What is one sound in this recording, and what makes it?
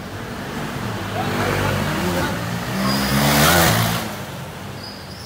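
A motorbike roars past close by.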